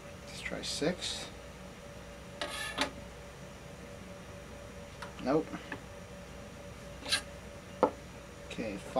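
A screwdriver squeaks and creaks as it turns a screw into wood, in short bursts.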